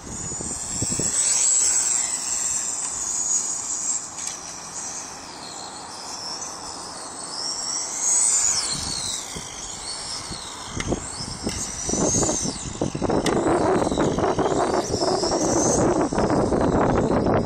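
Wind buffets outdoors, rumbling loudly.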